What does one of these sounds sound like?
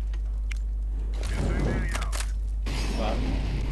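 A rifle is drawn with a metallic click.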